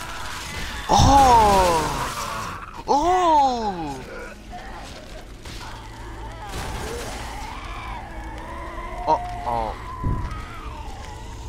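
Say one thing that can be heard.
A monster lets out loud, wavering screeches.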